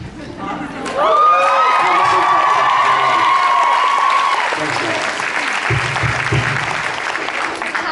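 An audience cheers and screams loudly.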